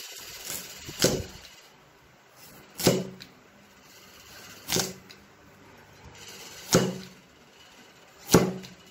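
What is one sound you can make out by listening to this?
A cleaver chops through carrot onto a wooden chopping board.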